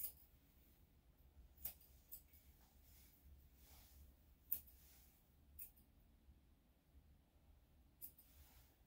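Scissors snip sharply at close range, every few seconds.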